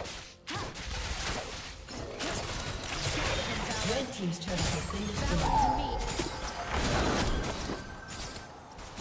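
Magical blasts whoosh and crackle in a busy fight.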